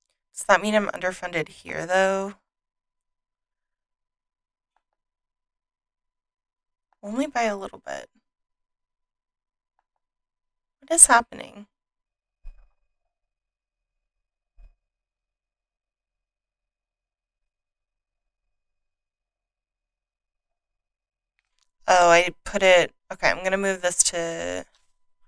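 A woman speaks calmly and close into a microphone, in short bursts.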